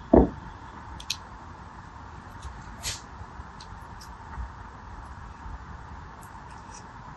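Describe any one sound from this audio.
A pen tip taps lightly on a gel bead.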